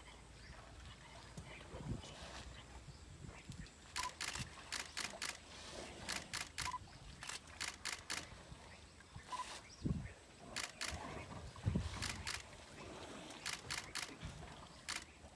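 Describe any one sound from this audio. Water splashes and drips as elephants drink from a pond.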